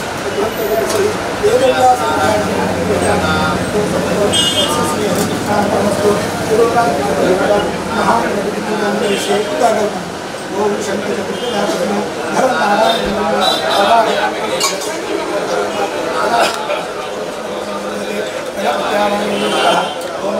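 Several men chant a prayer together in a steady rhythm.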